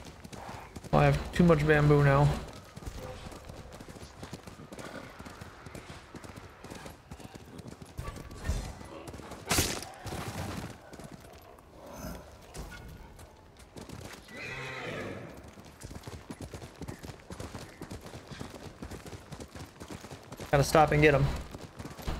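A horse's hooves gallop over snow.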